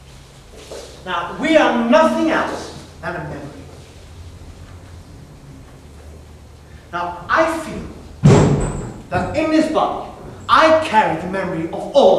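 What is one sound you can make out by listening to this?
A woman reads out loudly.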